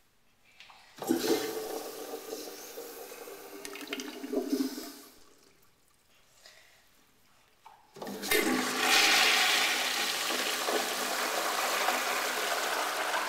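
A flushometer flushes water into a toilet bowl with a rush.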